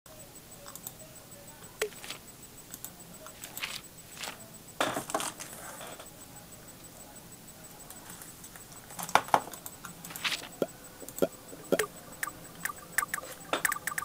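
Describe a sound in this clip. Short electronic clicks and blips sound as menu items are selected.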